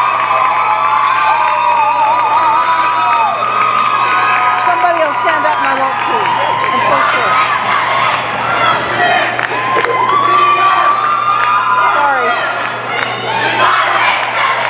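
A large crowd cheers, whistles and shouts loudly in a big echoing hall.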